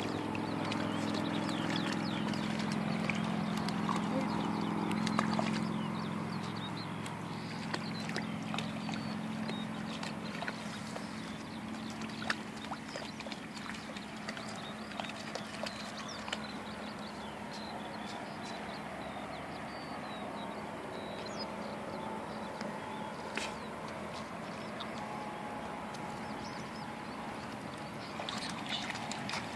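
A puppy splashes as it wades through shallow water.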